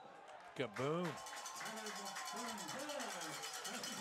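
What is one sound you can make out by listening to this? A crowd cheers and claps outdoors.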